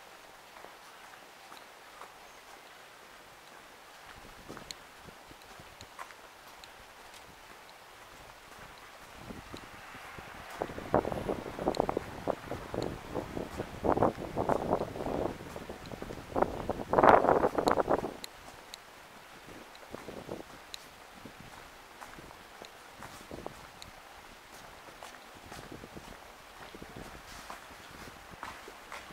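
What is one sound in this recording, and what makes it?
Footsteps tap steadily on a paved street.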